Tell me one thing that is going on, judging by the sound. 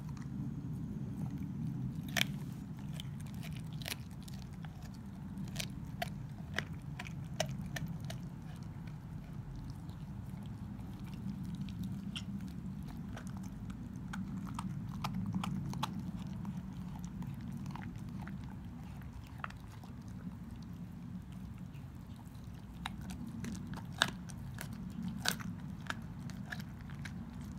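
A dog gnaws and crunches on a raw bone up close.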